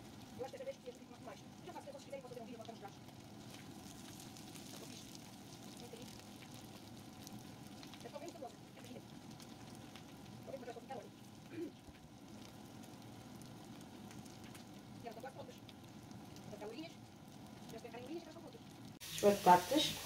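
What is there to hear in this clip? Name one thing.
Potatoes sizzle as they fry in oil in a pan.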